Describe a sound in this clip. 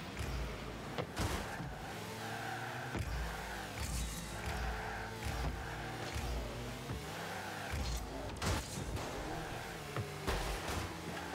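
A ball is struck with loud thuds.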